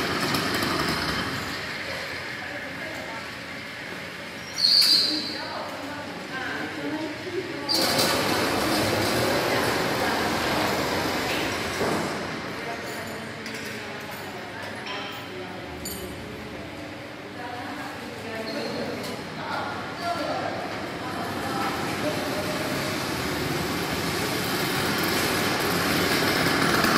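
A bicycle rolls over a smooth concrete floor in a large echoing hall.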